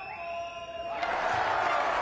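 A crowd roars loudly after a shot.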